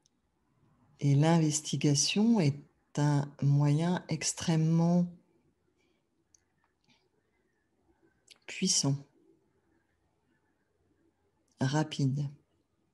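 A middle-aged woman speaks calmly and warmly into a nearby microphone, in short bursts with pauses.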